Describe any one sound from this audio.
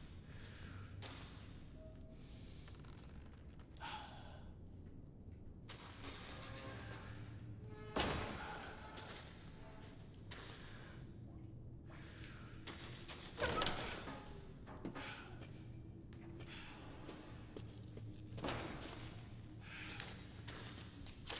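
Footsteps walk slowly on a stone floor in an echoing cellar.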